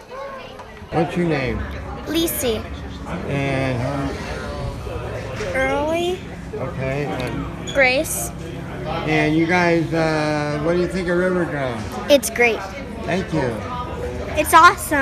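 A young girl talks with animation close to a phone's microphone.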